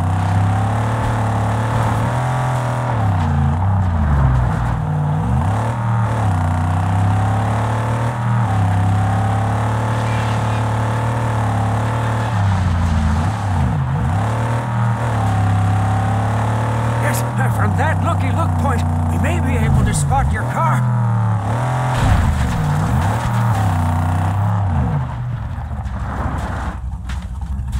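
A buggy engine roars and revs up and down as the buggy races along.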